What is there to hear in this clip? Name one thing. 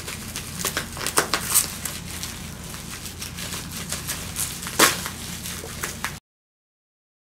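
A knife slices and scrapes through crinkling plastic wrap.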